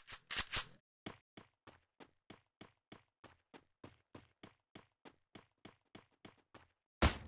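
Footsteps run quickly and evenly over the ground.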